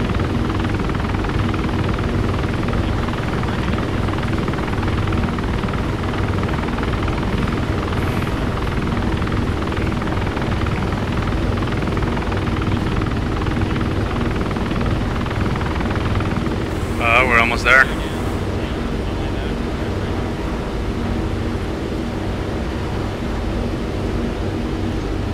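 A helicopter engine drones and its rotor thumps steadily inside the cabin.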